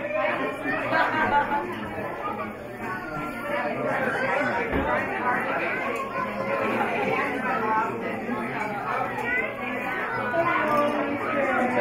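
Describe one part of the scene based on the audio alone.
Several people chatter nearby in a room.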